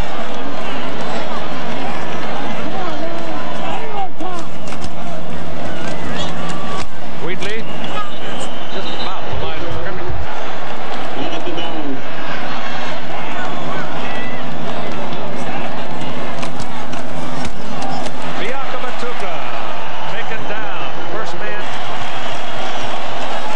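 A large crowd roars steadily outdoors.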